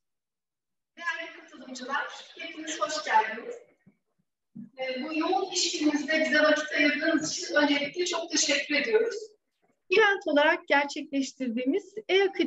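A middle-aged woman speaks warmly over an online call.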